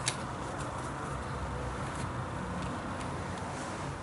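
A card is laid down on soft cloth.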